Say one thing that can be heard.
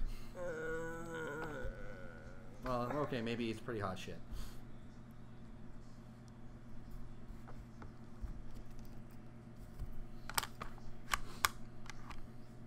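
Small plastic game pieces click and tap on a table.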